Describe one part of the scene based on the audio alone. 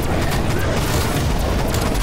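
An explosion booms with a burst of debris.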